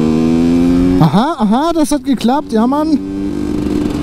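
A motorcycle engine is revved sharply in quick bursts.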